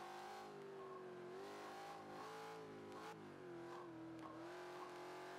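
A car engine roars at high revs, its pitch rising and dipping.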